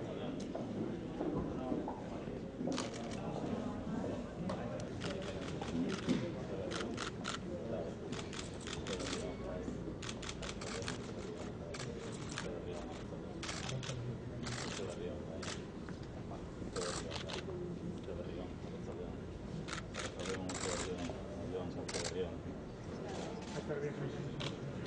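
Several men and women talk and greet each other in a murmur of voices.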